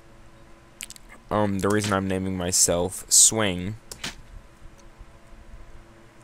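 Short electronic blips sound as menu choices are confirmed.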